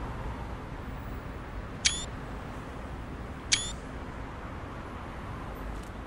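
Steam hisses steadily.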